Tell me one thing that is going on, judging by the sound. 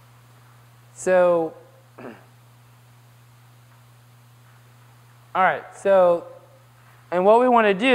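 A young man speaks in short bursts through a microphone.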